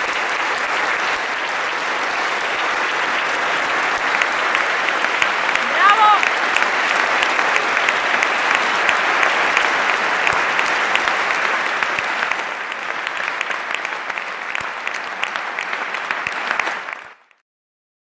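An audience applauds steadily in a large echoing hall.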